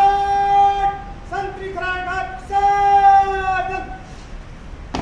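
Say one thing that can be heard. A man shouts drawn-out parade commands outdoors.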